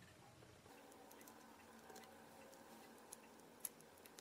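A component lead scrapes and clicks against a circuit board.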